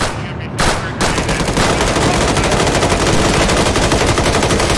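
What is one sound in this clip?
A machine gun fires rapid bursts close by.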